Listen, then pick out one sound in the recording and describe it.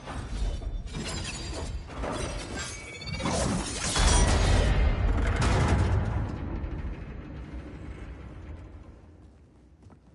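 A metal blade whirs and whooshes as it spins through the air.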